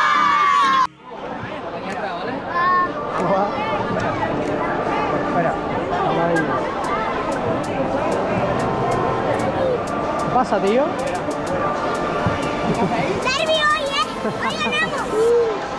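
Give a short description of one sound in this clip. A large stadium crowd murmurs in the open air.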